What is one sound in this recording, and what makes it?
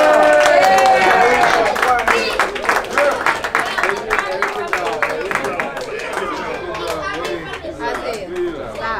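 A group of people claps and applauds.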